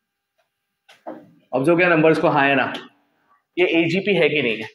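A man speaks clearly and with animation.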